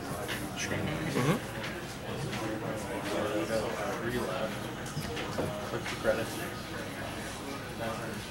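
Cards are laid down on a soft mat with light taps.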